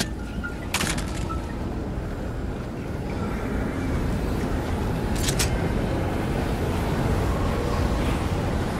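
Footsteps run quickly over snow and soft ground.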